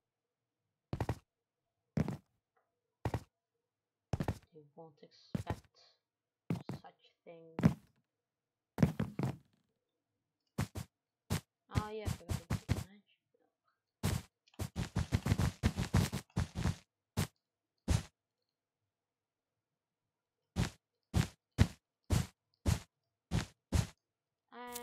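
Blocks are placed one after another with short, soft thuds.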